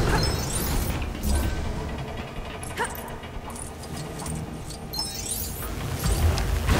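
Small coins jingle in quick rising chimes as they are collected.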